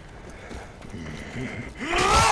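A zombie growls and groans close by.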